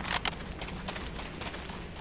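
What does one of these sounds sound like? Footsteps run across soft ground.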